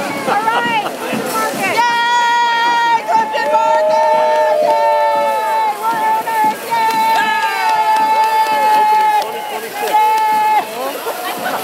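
Shopping cart wheels rattle over the street.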